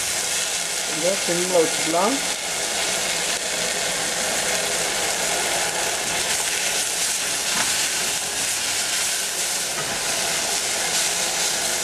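A spatula scrapes and stirs against a metal pan.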